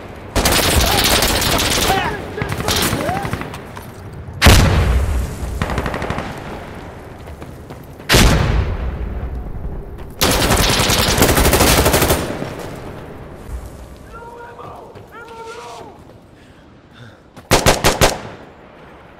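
Gunfire cracks in loud bursts.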